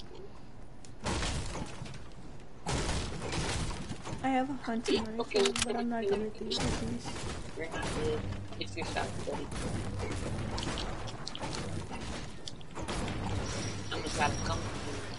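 A pickaxe strikes wooden crates with sharp thuds.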